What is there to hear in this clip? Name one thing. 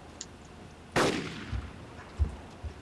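A rifle fires a loud shot that echoes away.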